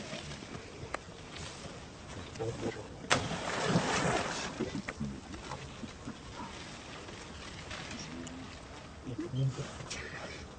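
A baby monkey squeaks and whimpers close by.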